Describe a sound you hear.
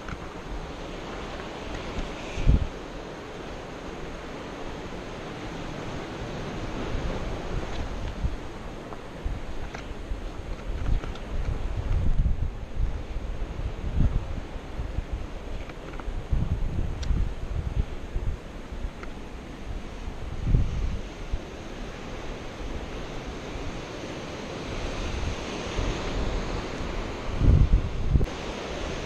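Waves wash against rocks far below.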